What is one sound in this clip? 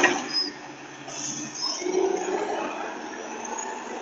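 A garbage truck drives off.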